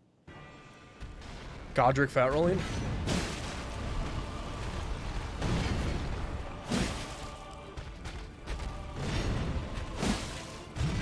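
Heavy weapons clash and thud in a fight.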